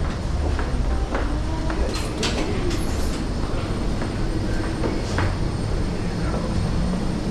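A wheelchair rolls with a low rumble over a metal walkway floor.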